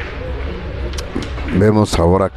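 A cue strikes a billiard ball.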